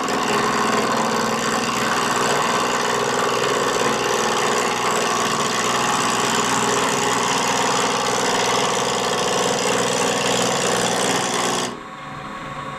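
A chisel scrapes and shaves spinning wood with a loud, rough hiss.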